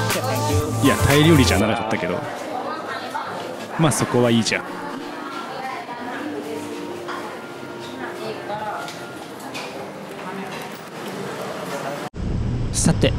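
Diners chatter in a busy room.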